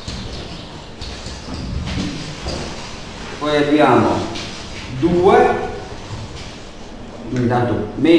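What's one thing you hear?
A man explains calmly through a microphone.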